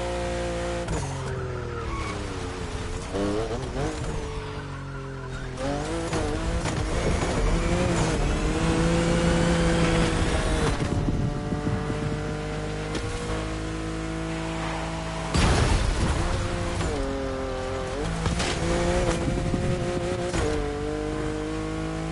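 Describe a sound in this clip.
A car engine roars, revving up and down as the gears shift.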